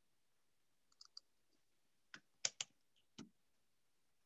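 Keys click on a computer keyboard.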